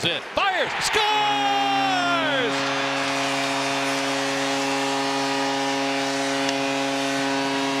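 A large crowd cheers and claps loudly in an echoing arena.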